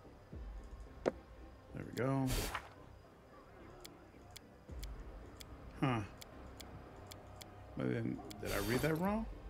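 Short interface clicks tick as menu pages are switched.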